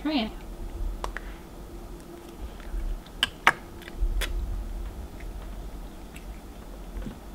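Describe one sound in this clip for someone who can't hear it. A fork clicks against a plate.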